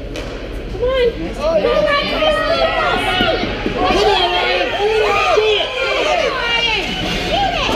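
Young players shout and call out across the echoing rink.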